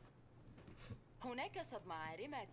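A woman news anchor speaks through a television.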